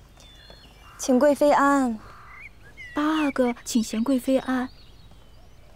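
A young woman speaks in a high, formal voice.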